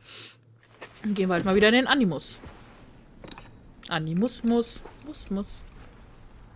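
A young woman speaks quietly and calmly nearby.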